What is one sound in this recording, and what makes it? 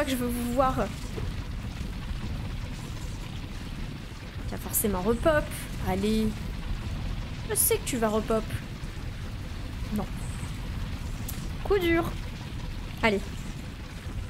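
A young woman talks with animation into a nearby microphone, in short bursts.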